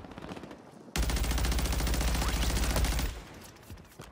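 An automatic rifle fires a long rapid burst at close range.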